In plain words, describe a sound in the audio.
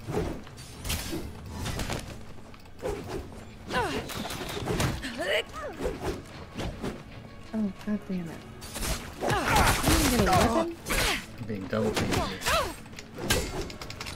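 Weapons clash and swish in combat.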